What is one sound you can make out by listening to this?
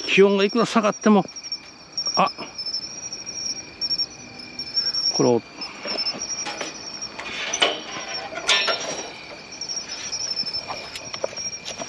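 A bicycle is wheeled along a paved path.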